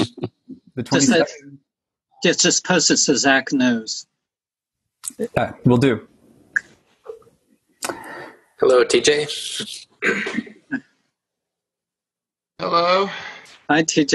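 A middle-aged man talks calmly and close to a microphone, with pauses.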